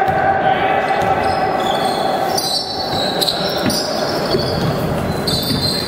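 A basketball bounces on a wooden floor in a large echoing gym.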